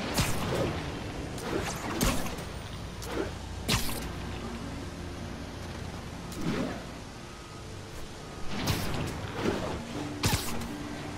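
Webs shoot out with sharp whooshing snaps.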